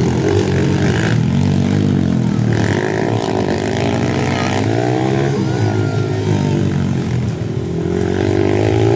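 Dirt bike engines rev loudly and roar, rising and falling in pitch.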